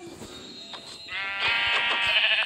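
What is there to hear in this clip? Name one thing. A pig grunts loudly close by.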